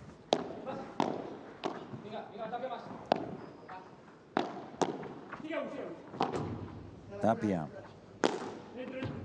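Padel rackets strike a ball with sharp pops in a rally.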